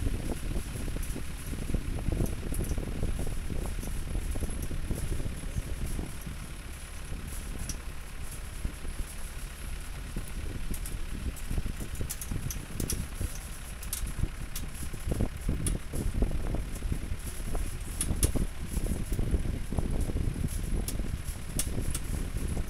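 A metal rail rattles.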